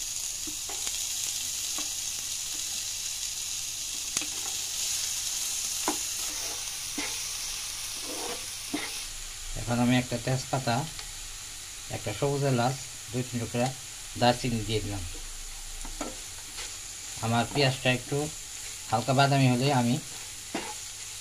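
A spatula scrapes and taps against a pan.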